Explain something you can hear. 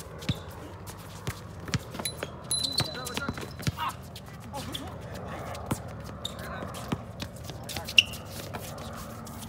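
A basketball bounces on hard pavement outdoors.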